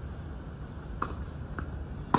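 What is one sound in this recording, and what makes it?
A tennis ball is struck by a racket with sharp pops.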